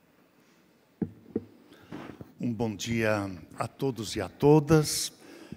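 A man speaks formally through a microphone in a large hall.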